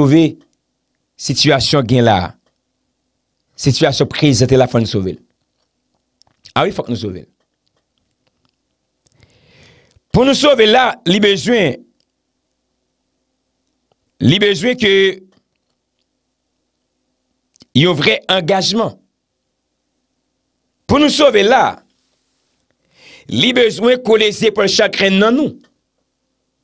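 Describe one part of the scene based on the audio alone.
A young man speaks calmly and close into a microphone, in short phrases with pauses.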